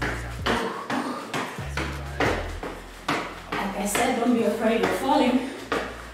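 Spring boots thump and creak in a steady rhythm.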